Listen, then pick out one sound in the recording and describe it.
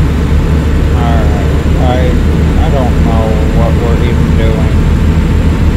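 A man speaks briefly and calmly into a headset microphone.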